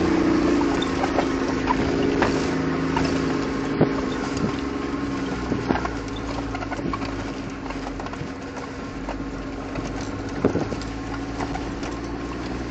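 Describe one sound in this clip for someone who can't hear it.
A vehicle's engine hums steadily from inside the cabin.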